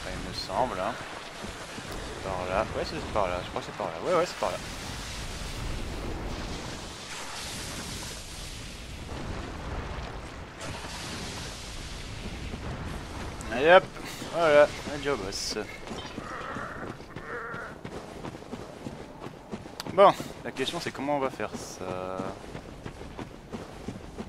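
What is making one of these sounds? Footsteps crunch steadily over dirt and stone.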